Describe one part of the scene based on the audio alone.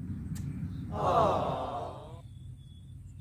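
A fishing line whizzes off a reel during a cast.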